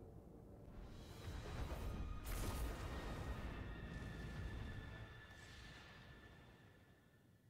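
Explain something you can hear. Spacecraft engines roar and whoosh past.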